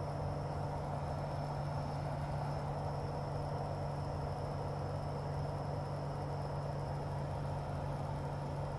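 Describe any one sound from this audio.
A small plane's propeller engine drones steadily from inside the cockpit.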